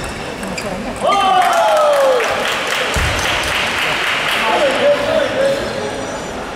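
A crowd of spectators cheers and claps.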